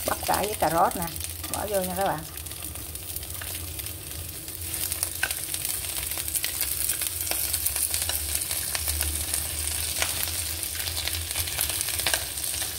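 Chopped vegetables slide off a plate and patter into a pan.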